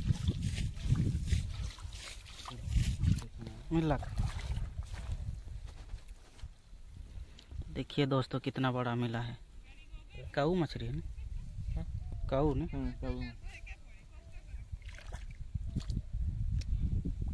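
Hands squelch and scoop through wet mud.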